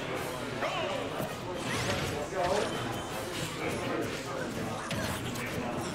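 Punches and blasts from a video game fight hit in quick bursts.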